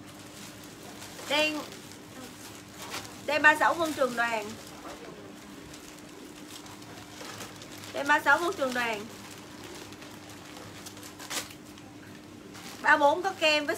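Plastic packaging crinkles and rustles in hands.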